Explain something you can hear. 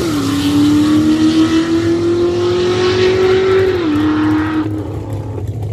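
A race car engine roars loudly as the car speeds down the track.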